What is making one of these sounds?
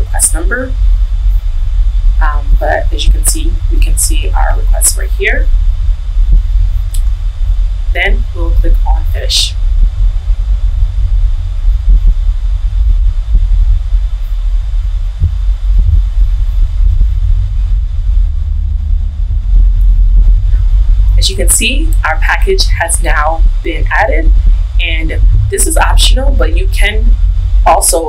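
A young woman speaks calmly into a close microphone, with pauses.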